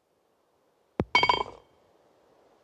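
A golf ball drops and rattles into the cup.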